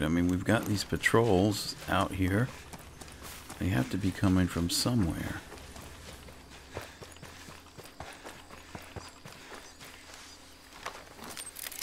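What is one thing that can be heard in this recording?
Footsteps rustle through grass and brush.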